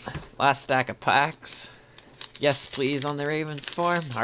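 Playing cards rustle as a hand picks up and handles a stack of them.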